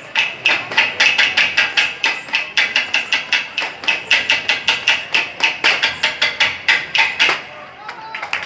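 Bamboo poles clap together in a quick, steady rhythm.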